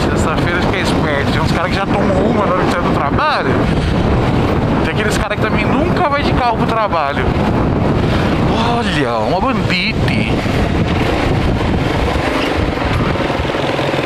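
Wind rushes loudly past while riding.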